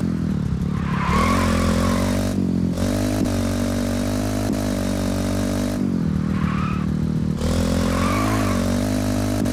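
Tyres screech on the road.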